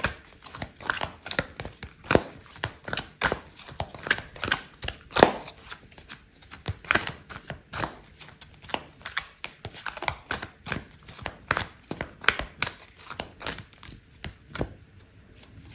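Cards shuffle with quick, crisp riffling clicks.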